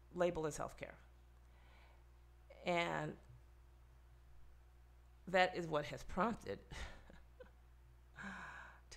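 A middle-aged woman speaks calmly and close into a microphone, in short phrases.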